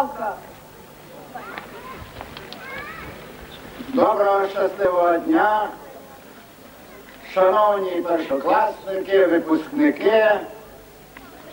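An elderly man speaks into a microphone outdoors.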